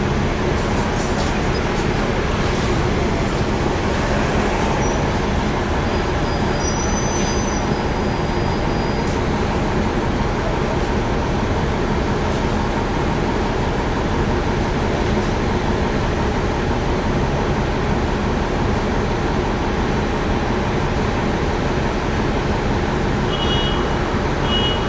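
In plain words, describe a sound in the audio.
The bus rattles and clatters as it drives.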